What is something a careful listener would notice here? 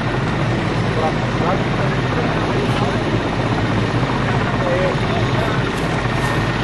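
A small propeller plane's engine drones steadily nearby.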